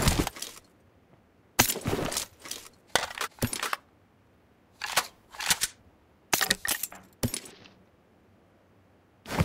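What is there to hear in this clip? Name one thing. Gear rustles and clicks in short bursts as items are picked up.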